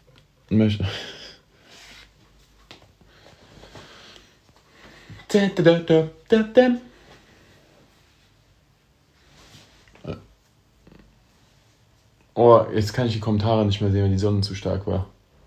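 A young man speaks casually and close to the microphone, in short bursts with pauses.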